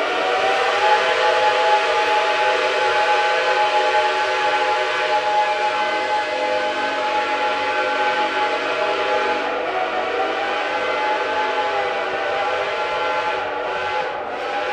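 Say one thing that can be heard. A locomotive engine drones steadily nearby.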